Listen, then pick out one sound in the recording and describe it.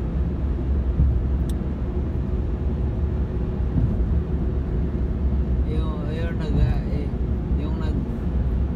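Tyres rumble steadily on the road, heard from inside a moving car.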